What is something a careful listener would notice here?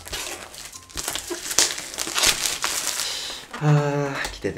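Plastic wrap crinkles and rustles.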